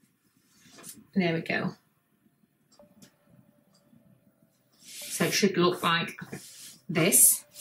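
Hands brush and rustle soft fabric.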